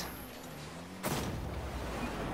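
A loud burst booms as a ball explodes.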